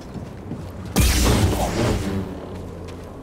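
A lightsaber ignites with a loud rushing burst.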